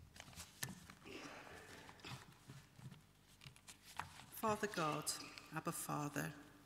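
A woman reads aloud calmly through a microphone in a large echoing hall.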